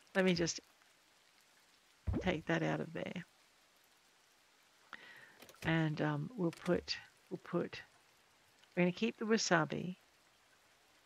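An elderly woman talks calmly and close to a microphone, in short bursts with pauses.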